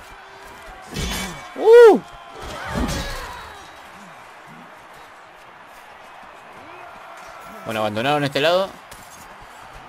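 Men shout and scream in battle.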